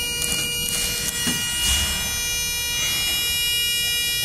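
Elevator doors slide shut with a low rumble.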